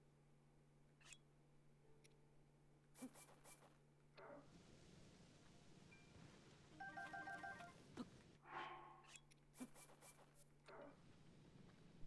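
Game menu clicks and chimes sound.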